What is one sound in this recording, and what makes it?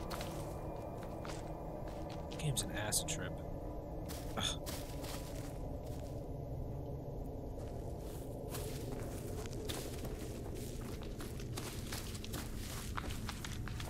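Footsteps crunch through dry leaves and twigs at a steady walk.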